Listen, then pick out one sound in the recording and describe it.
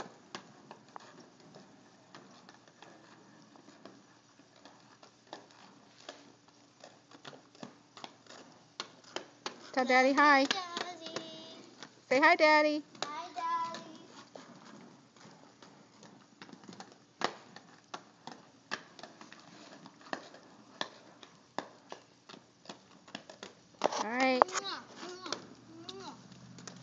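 Skate wheels clatter and roll on pavement.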